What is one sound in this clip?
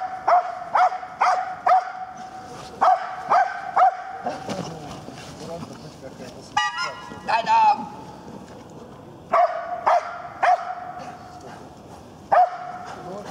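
A large dog barks sharply in short bursts.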